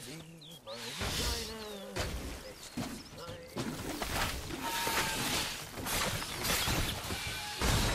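Swords slash and strike with heavy blows in a fight.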